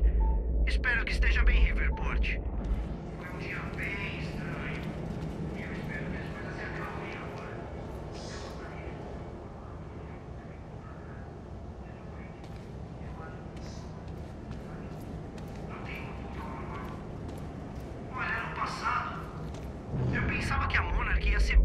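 Machinery hums steadily and low.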